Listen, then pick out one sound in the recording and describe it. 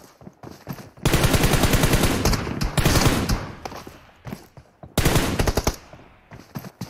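Rapid gunfire bursts loudly from a game.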